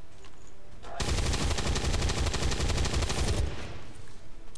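A heavy weapon fires a long, loud roaring burst.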